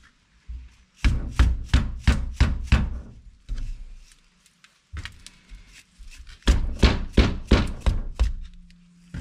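A rubber mallet strikes a metal part in quick, repeated blows.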